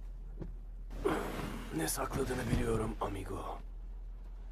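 A man with a deep, rough voice replies gruffly, close by.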